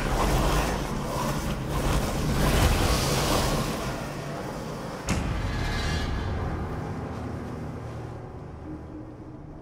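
A deep rushing whoosh swells and then slowly fades away.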